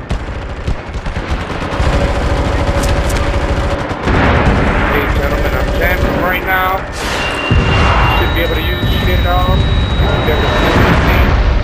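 A heavy rotary machine gun fires in long, rapid bursts.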